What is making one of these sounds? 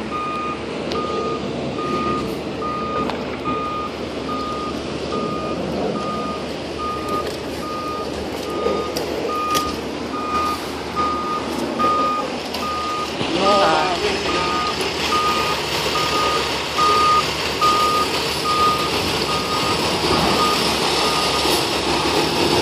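A fire truck's reversing alarm beeps steadily and evenly.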